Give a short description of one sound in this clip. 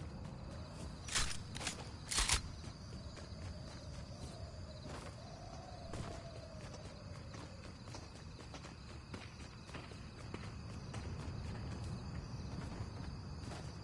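Footsteps run across the ground.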